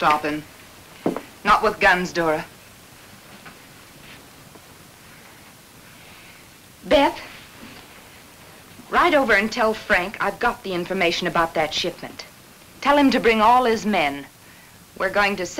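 A woman speaks sharply and close by.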